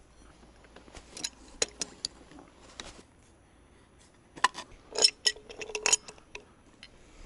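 Metal fittings clink and knock together.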